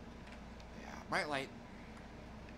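A middle-aged man makes a brief vocal sound close to a microphone.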